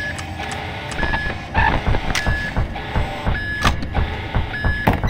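A loud, harsh screech blares suddenly and keeps crashing.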